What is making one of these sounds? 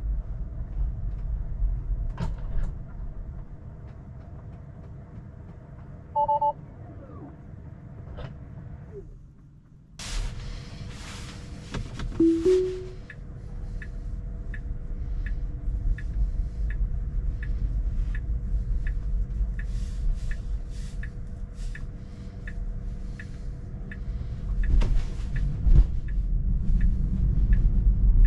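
Tyres hum steadily on the road from inside a car.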